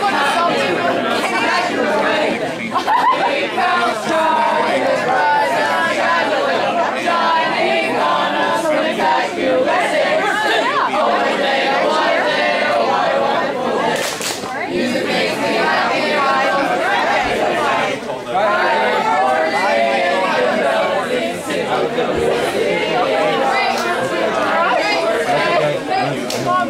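A crowd of young men and women chatter loudly nearby, outdoors.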